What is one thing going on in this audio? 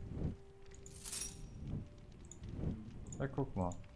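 A metal chain clinks and rattles.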